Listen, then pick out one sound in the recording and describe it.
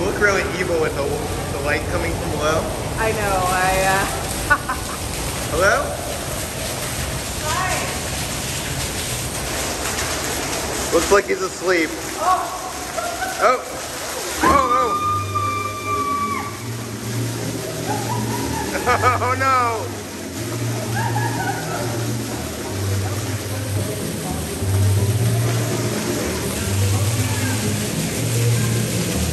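Fountain jets splash and spray water steadily.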